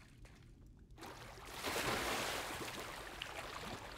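Water splashes and sloshes as someone wades and swims.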